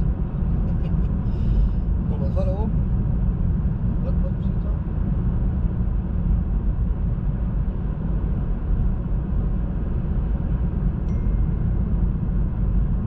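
A car drives steadily along a road, its engine and tyres rumbling low inside the cabin.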